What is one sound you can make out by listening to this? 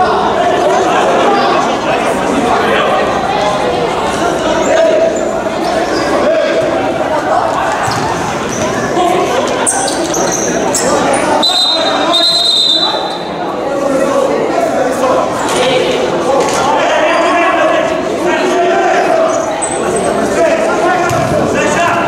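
Players' shoes squeak on a hard court.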